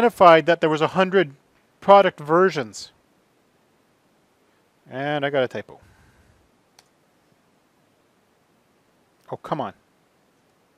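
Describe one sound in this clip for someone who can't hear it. A man speaks calmly into a microphone, pausing between short phrases.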